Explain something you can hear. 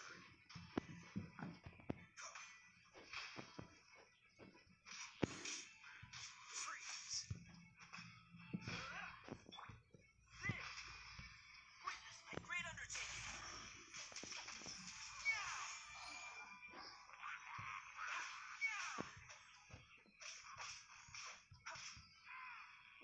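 Swords clash and slash in quick, repeated strikes.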